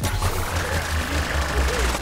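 A game jetpack roars with a burst of flame.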